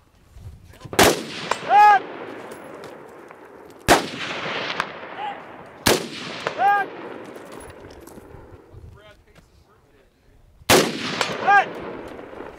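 A rifle fires single loud shots that echo across open country.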